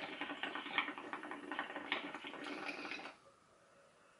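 Water bubbles and gurgles in a pipe.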